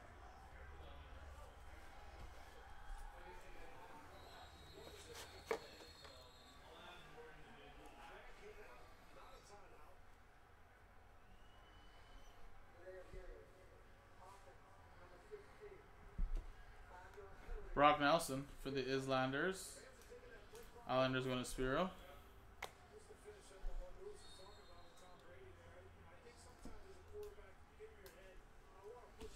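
Trading cards rustle and slide as a pack is shuffled through.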